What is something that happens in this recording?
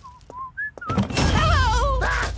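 A woman cheers loudly and excitedly.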